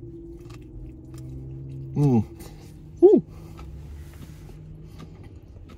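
A middle-aged man chews food close by.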